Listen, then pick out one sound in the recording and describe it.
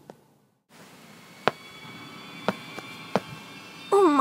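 Stones clack together as they are set down on the ground.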